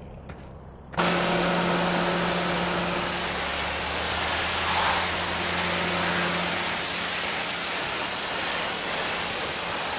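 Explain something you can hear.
A pressure washer sprays water with a loud hiss.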